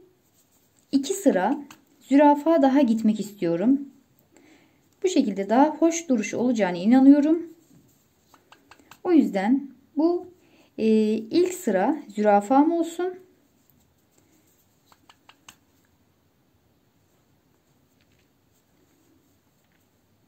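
A needle and thread pull softly through fabric.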